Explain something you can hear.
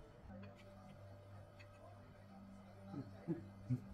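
A metal spoon clinks lightly against a ceramic plate.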